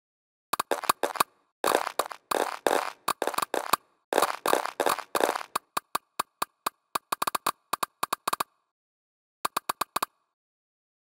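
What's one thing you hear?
Quick popping clicks sound as food items stack up one after another.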